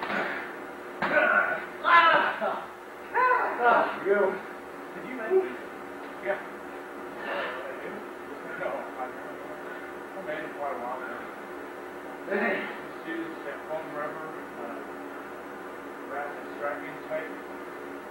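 Men talk nearby in a large echoing hall.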